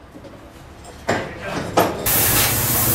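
A hammer strikes metal.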